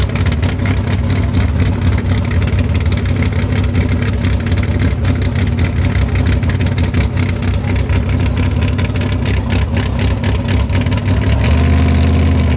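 A loud drag racing engine idles with a deep, lumpy rumble.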